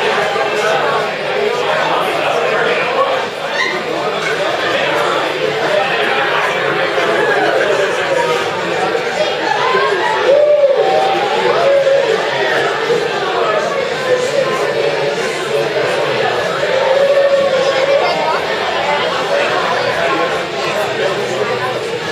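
A crowd of men and women chatter and talk all around in a busy room.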